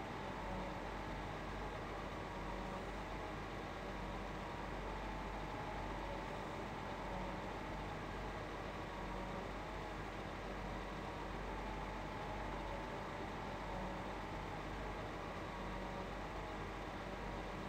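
A feed mixer churns with a low rumble.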